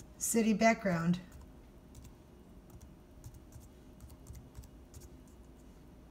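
Fingers tap lightly on laptop keys.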